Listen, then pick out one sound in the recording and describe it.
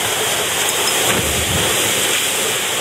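A person plunges into deep water with a splash.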